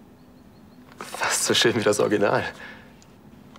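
A young man speaks softly and warmly up close.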